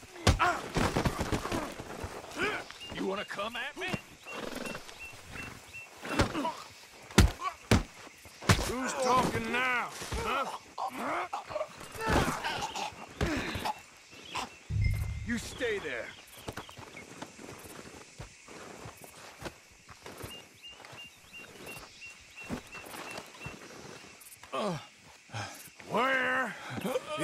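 Men talk with animation, heard close.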